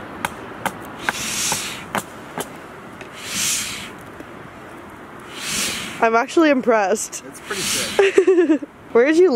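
A young man blows on hot food in short breaths.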